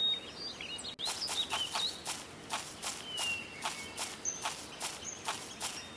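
Footsteps tread steadily over soft ground.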